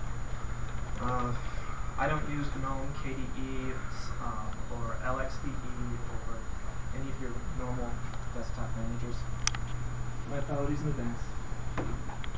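A young man speaks calmly to a room, heard from a distance.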